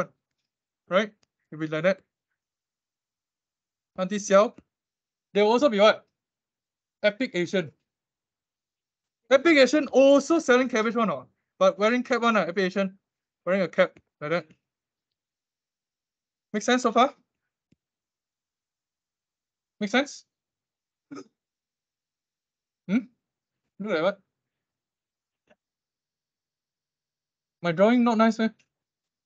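A young man speaks calmly in short phrases over an online call.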